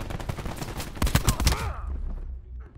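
Automatic gunfire rattles in a short burst.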